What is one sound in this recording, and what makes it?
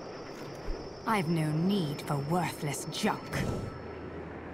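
A second young woman answers coldly and haughtily.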